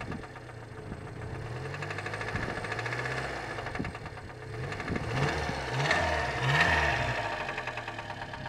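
A small engine idles with a rapid, rattling chug and revs up a few times.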